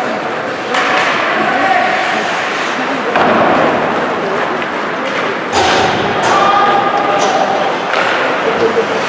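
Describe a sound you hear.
A crowd of spectators chatters and cheers in a large echoing rink.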